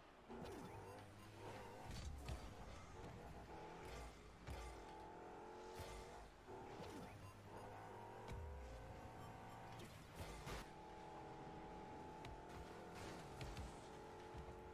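A video game car engine hums and roars as it speeds up.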